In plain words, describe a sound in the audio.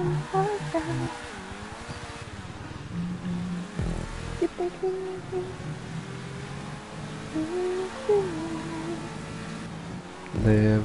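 A sports car engine roars and revs.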